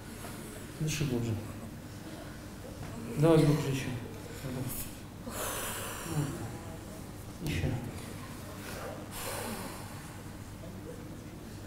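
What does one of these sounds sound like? A woman speaks emotionally into a microphone.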